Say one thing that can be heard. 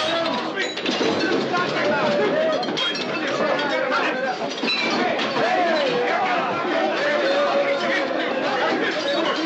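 A crowd of men shouts and clamours in a room.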